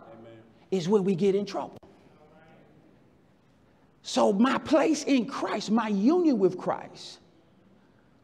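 A middle-aged man preaches with animation through a microphone in an echoing hall.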